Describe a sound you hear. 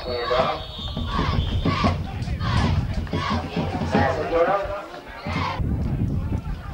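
Nearby spectators shout and cheer excitedly outdoors.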